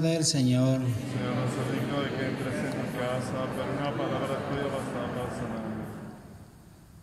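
A man chants in a steady voice through a loudspeaker.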